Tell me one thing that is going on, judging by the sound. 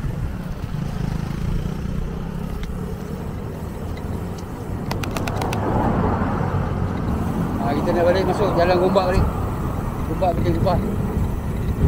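Wind rumbles across the microphone while cycling along a road.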